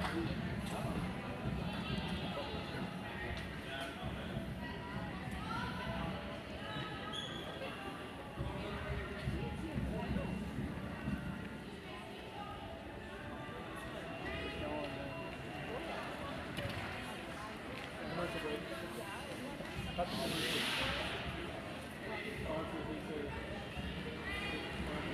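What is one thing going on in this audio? Children's voices chatter and call out across a large echoing rink.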